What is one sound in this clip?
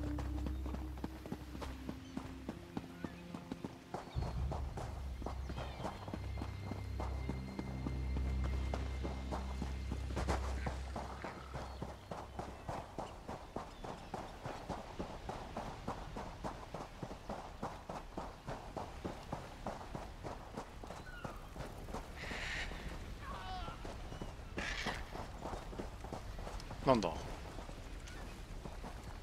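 Footsteps patter quickly on dirt and stone.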